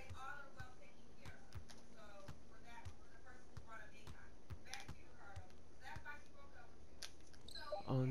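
A basketball bounces steadily on a hardwood court.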